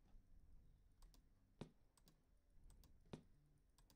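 A plastic box clunks down onto a hard surface.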